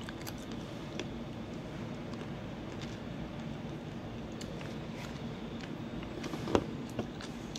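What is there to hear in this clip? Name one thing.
A woman chews food close by.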